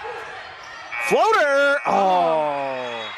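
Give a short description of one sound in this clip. A loud game horn blares.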